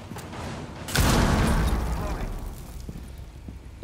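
An explosion booms nearby and rumbles away.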